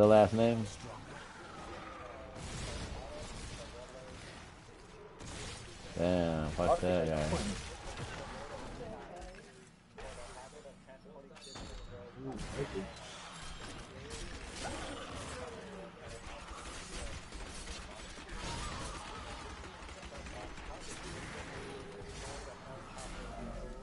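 Video game combat effects whoosh and crackle as spells are cast.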